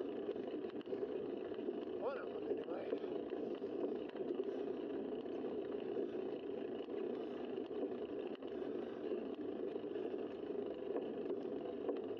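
Wind rushes steadily past a moving cyclist.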